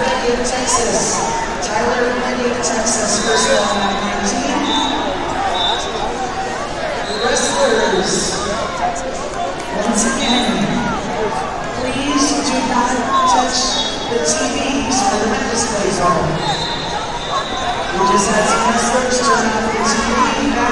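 Spectators, men and women, shout encouragement loudly.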